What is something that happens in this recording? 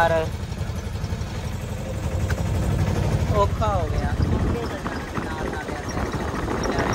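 Wind rushes past an open vehicle.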